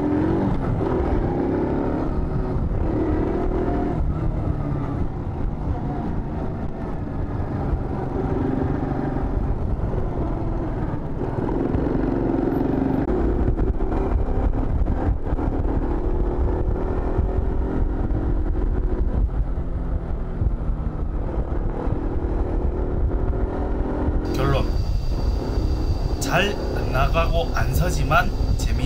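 A motorcycle engine hums and rises and falls in pitch as it rides along.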